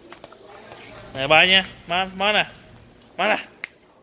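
A plastic toy rattles and clatters in a child's hands.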